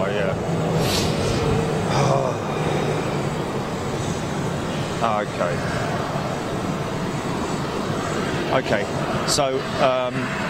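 A jet airliner's engines hum steadily as it taxis.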